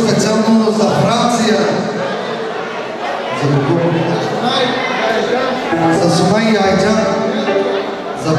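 A crowd of adult guests chatters loudly in a large echoing hall.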